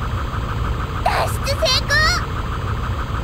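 Electronic game sound effects chirp and rise quickly in pitch.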